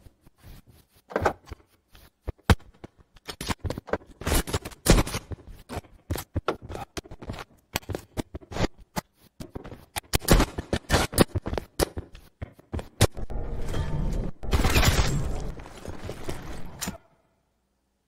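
Rapid gunshots crack and pop.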